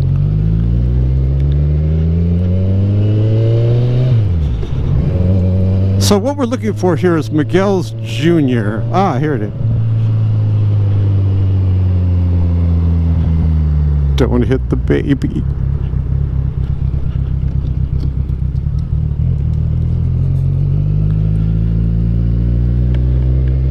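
A motorcycle engine hums up close, rising in pitch as it speeds up and dropping as it shifts gear.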